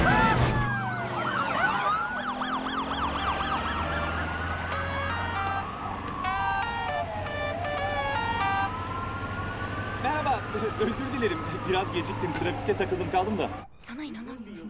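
Police sirens wail loudly, rising and falling.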